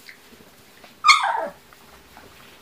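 A puppy lets out a high, falling yelp.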